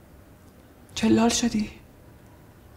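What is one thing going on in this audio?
A young woman asks a question in a calm, tense voice, close by.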